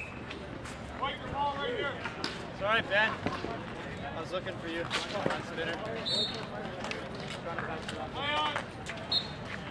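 Men shout and call out across an outdoor court.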